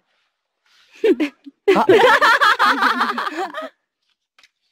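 Young women laugh loudly together.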